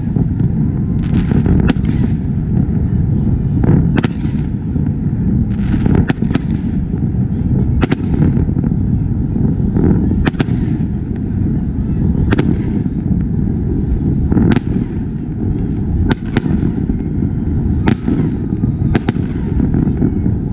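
Fireworks crackle and hiss after the bursts.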